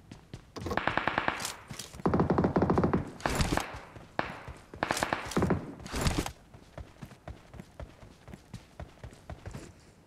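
Footsteps run over sand.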